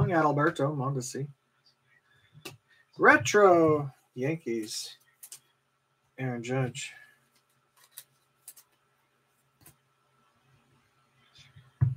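Trading cards rustle and tap as hands sort through them.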